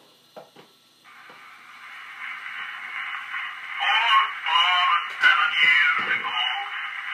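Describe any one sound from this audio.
An old phonograph plays a thin, tinny recording through its horn, growing louder.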